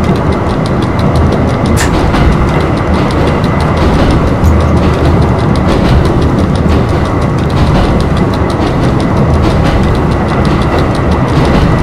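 Train wheels click rapidly over rail joints.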